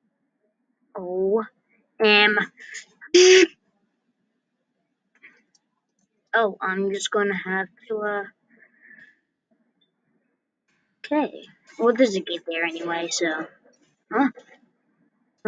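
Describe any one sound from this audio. A man speaks in short, animated bursts.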